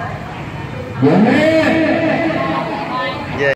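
A little girl lets out a loud, drawn-out cry.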